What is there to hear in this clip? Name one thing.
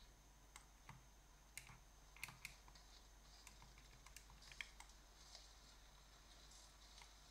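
Buttons and thumbsticks click softly on a handheld game console.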